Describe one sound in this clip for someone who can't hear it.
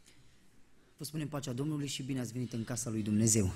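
A man speaks into a microphone, heard through a loudspeaker in an echoing hall.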